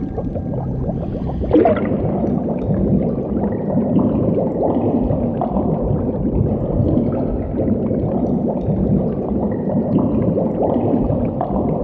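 Air bubbles gurgle and rise underwater.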